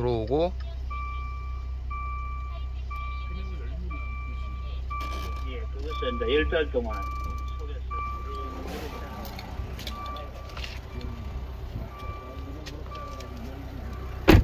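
A car's warning chime beeps over and over at an even pace.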